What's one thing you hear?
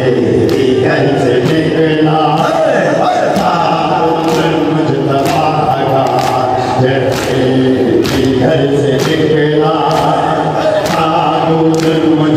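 A large crowd of men chants loudly together in a rhythmic, mournful way.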